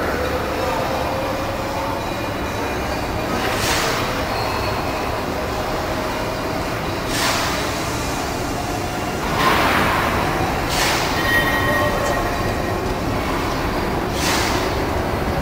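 A steam locomotive rumbles steadily nearby.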